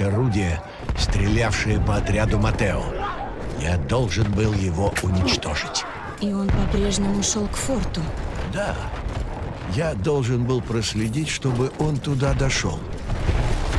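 Gunshots crack in rapid bursts close by.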